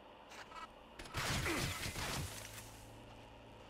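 A sniper rifle fires.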